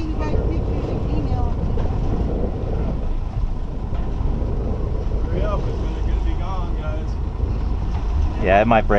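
A boat engine rumbles steadily in the wind.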